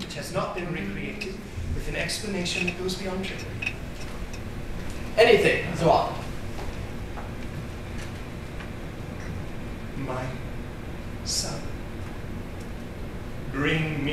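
Men speak in turn in a large echoing hall.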